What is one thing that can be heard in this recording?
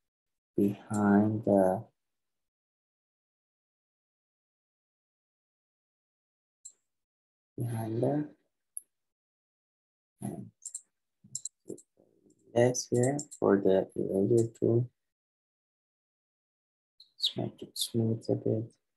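A young man talks calmly into a close microphone, with pauses.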